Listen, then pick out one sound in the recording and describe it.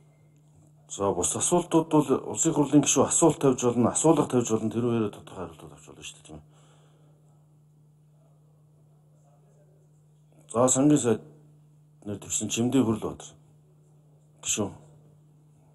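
A middle-aged man reads out and speaks calmly into a microphone.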